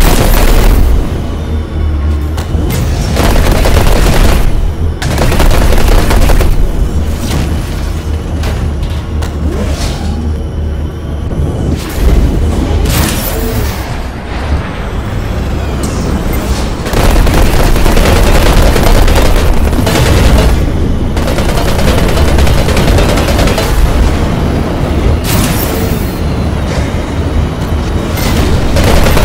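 A racing craft's engine roars and whooshes at high speed.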